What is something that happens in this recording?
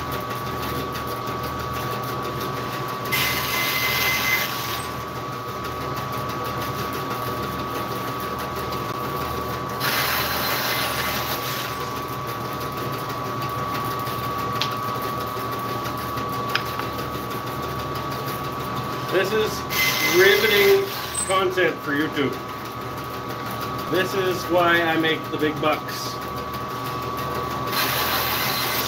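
A band saw hums steadily.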